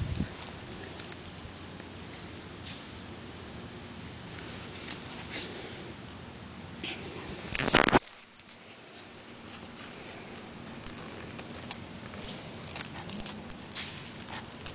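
A puppy sniffs and snuffles close by.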